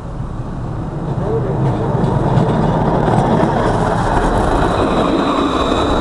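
A car drives past close by.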